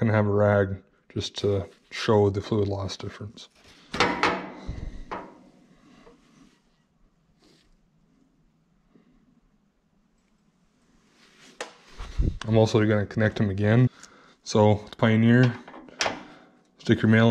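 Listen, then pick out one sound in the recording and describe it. A metal hose coupling clicks as it snaps onto a fitting.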